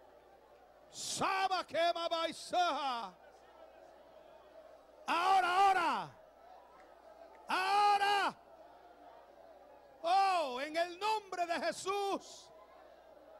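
A man cries out fervent prayers in loud bursts through a microphone.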